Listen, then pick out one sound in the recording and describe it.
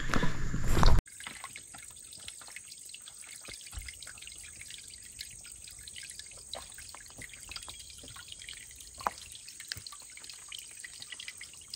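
Water trickles quietly over rocks.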